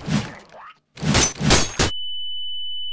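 A loud explosion bursts nearby.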